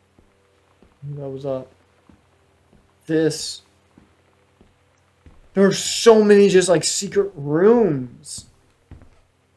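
A young man talks with animation, close to a microphone, with long pauses.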